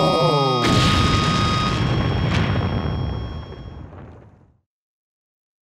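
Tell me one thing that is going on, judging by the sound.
A huge explosion booms and its deep rumble slowly fades away.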